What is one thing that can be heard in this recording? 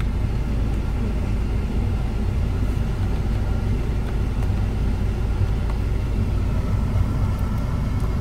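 A finger clicks climate control buttons.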